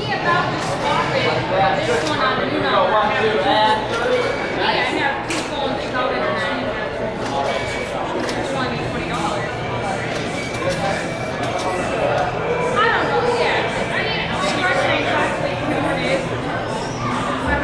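Several men talk together nearby, overlapping one another.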